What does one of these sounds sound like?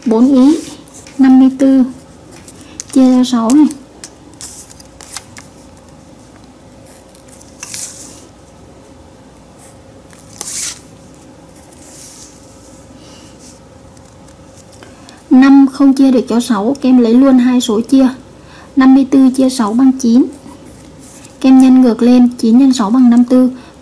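A marker pen writes on paper.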